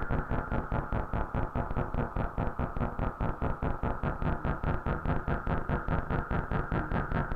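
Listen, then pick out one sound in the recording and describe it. An electronic synthesizer plays a fast, steady pulsing pattern with a deep beat.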